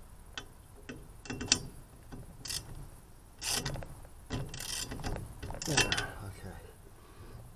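Metal parts click and rattle close by.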